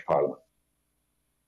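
An elderly man speaks briefly over an online call.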